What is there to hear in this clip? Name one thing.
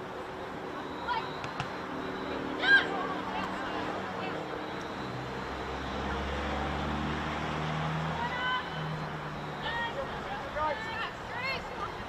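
Women players shout across an open field in the distance.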